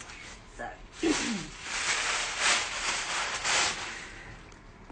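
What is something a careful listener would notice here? Fabric rustles close by.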